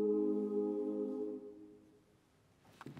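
A choir sings a sustained chord that fades away in an echoing hall.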